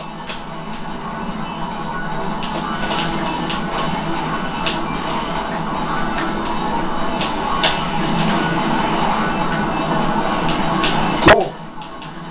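A racing video game's engines whine and roar steadily through a television speaker.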